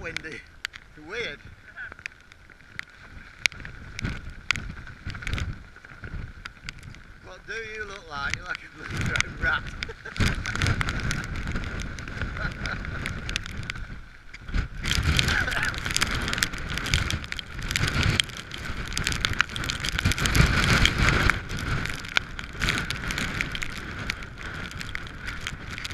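Rain patters on the microphone.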